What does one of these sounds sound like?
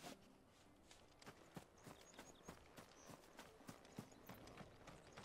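Footsteps run quickly over gravel and grass.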